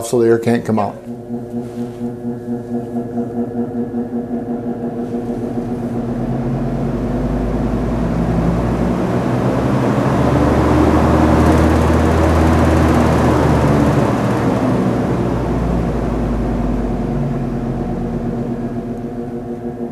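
An air conditioning unit hums and blows air, swelling and then easing off.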